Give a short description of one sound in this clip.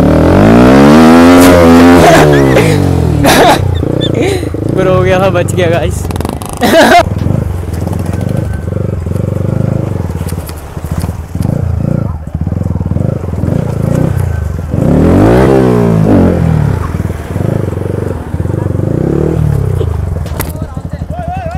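A motorcycle engine revs hard and roars up and down.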